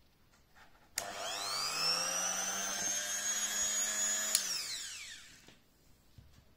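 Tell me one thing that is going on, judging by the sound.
A small rotary tool starts up, whines and spins down again.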